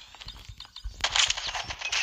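Gunfire rattles in rapid bursts close by.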